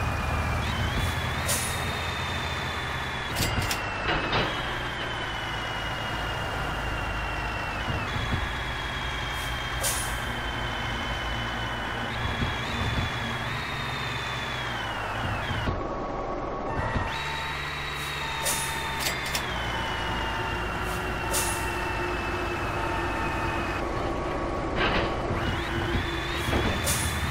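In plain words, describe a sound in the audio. A truck engine rumbles and whines steadily, rising and falling in pitch.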